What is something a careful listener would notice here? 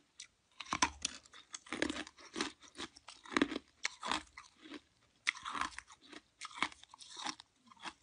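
A woman sucks and slurps on an ice treat up close to a microphone.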